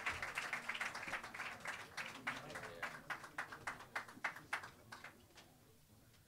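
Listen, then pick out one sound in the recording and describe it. A drummer taps a cymbal in a quick steady rhythm.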